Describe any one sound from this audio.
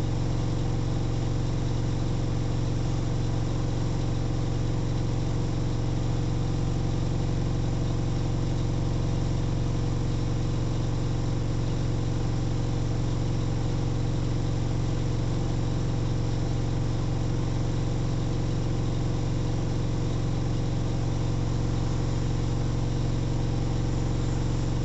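A washing machine hums steadily as its drum spins.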